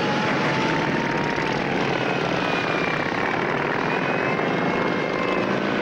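Motorcycle engines rumble and rev as the bikes ride off.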